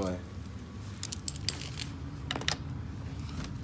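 A metal leash clip clicks and rattles.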